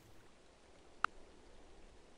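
A game menu opens with a short click.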